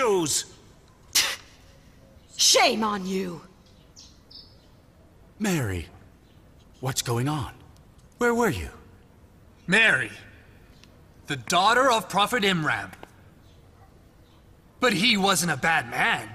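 A man speaks loudly and forcefully, in short declaiming bursts.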